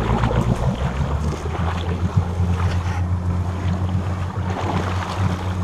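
A car engine rumbles steadily as a vehicle drives through deep water.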